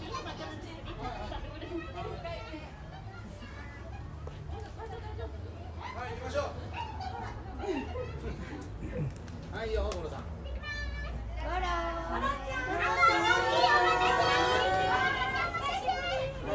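A small crowd chatters nearby.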